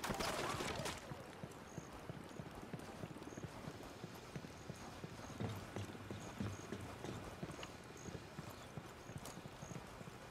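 Footsteps thud quickly on dirt and gravel as a man runs.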